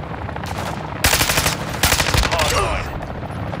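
A rifle fires a rapid burst of loud gunshots.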